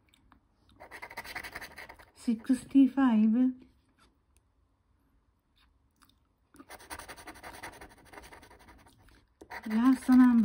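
A plastic scraper scratches rapidly across a scratch card.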